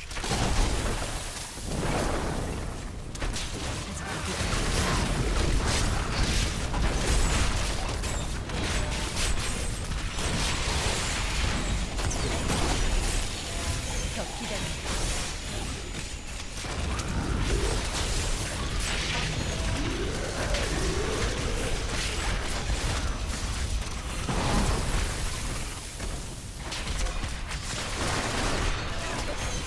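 Spells and weapons hit again and again, with loud blasts and crackles in a video game fight.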